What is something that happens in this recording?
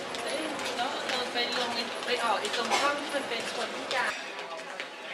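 A crowd murmurs and footsteps echo in a large hall.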